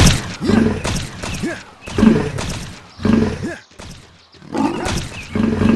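A wolf growls and snarls as it bites.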